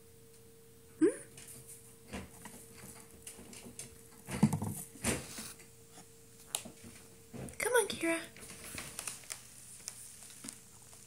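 A small animal scrabbles and shuffles inside a hollow plastic tunnel.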